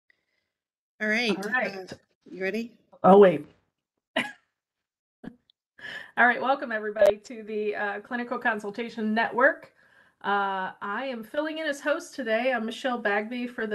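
A middle-aged woman speaks calmly through an online call microphone.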